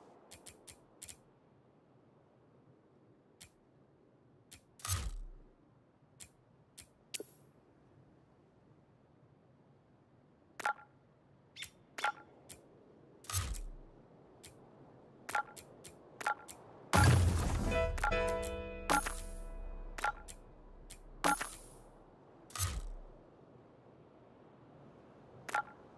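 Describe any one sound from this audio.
Game menu clicks tick softly.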